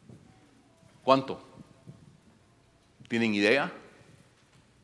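An elderly man speaks slowly and emphatically through a microphone.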